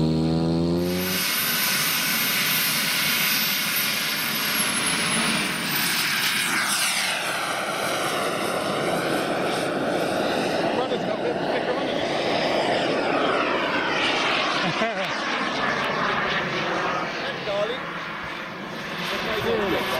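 A model jet engine whines loudly, its pitch sweeping as it roars past overhead.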